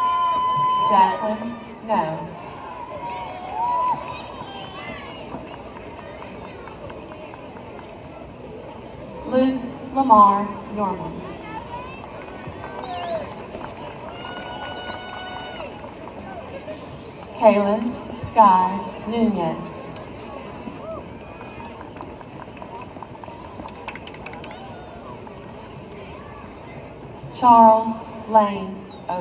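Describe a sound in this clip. A crowd of young people cheers and shouts loudly outdoors in short bursts.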